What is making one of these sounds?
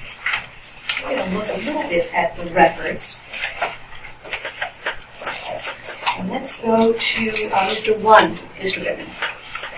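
A woman speaks calmly at a distance.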